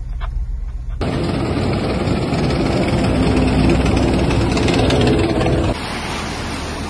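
A heavy vehicle's engine rumbles as it drives through water.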